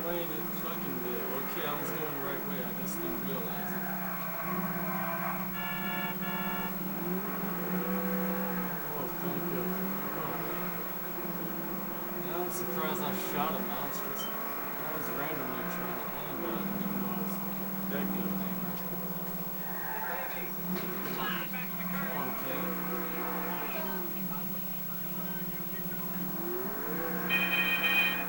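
A video game muscle car engine revs through a television speaker.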